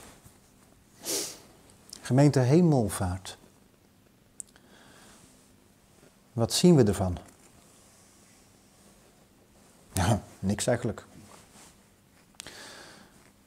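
An elderly man speaks slowly and solemnly in short phrases through a microphone.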